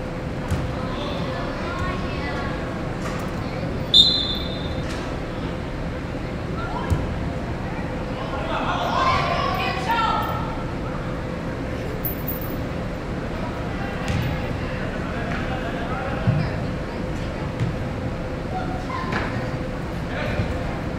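Young players shout to each other across the field.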